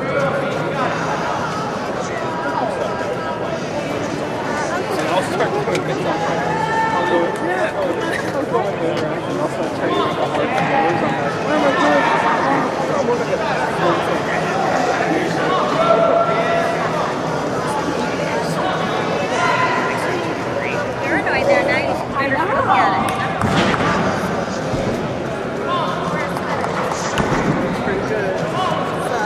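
A crowd of voices murmurs and chatters throughout a large echoing arena.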